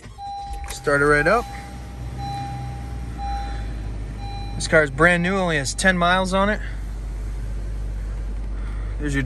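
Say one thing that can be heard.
A car engine starts and idles steadily.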